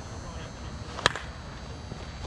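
A bat cracks sharply against a softball.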